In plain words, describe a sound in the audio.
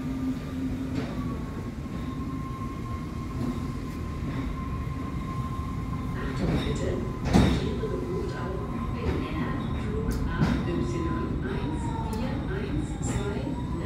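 A bus engine idles outside, muffled through window glass.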